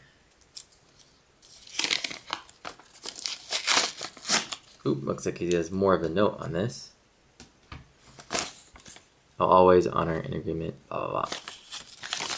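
A sheet of paper rustles as it is unfolded and handled.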